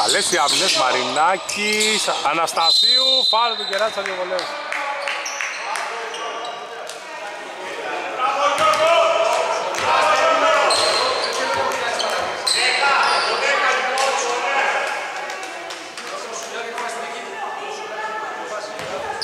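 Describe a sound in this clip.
A basketball bounces with hollow thuds on the court.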